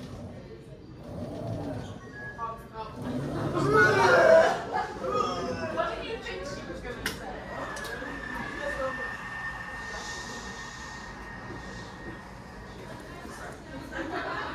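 A small delivery robot's motor whirs as it rolls across the floor.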